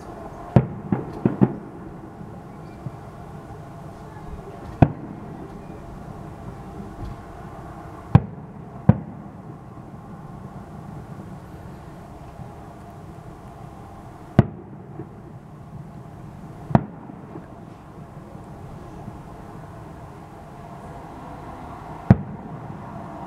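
Fireworks burst with sharp, booming bangs that echo away into the distance.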